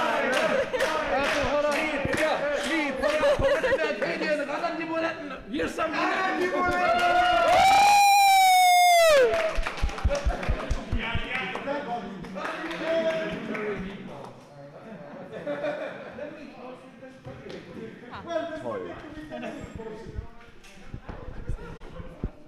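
A group of young men and women chant and sing together loudly nearby.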